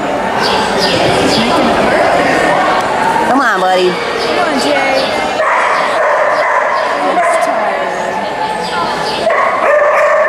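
A woman calls out commands to a dog with animation.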